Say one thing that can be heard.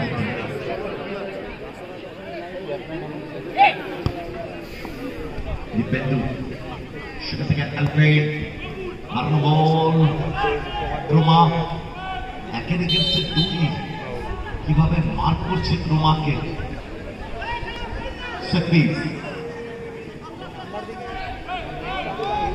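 A large outdoor crowd chatters and calls out throughout.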